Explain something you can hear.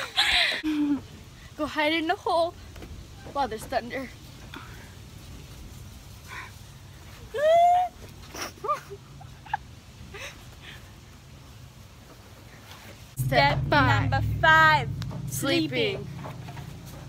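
A teenage girl talks with animation close by.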